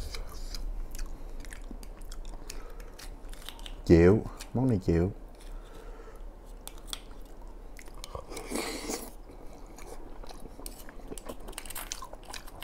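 A spoon clinks against a shell.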